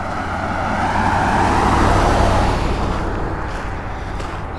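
A car passes close by on the road and fades away.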